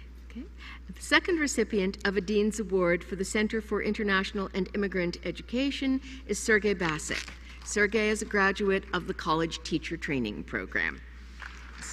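An elderly woman speaks into a microphone over loudspeakers in a large hall.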